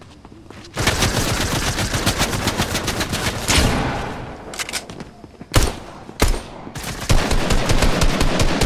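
Quick footsteps patter along as a figure runs.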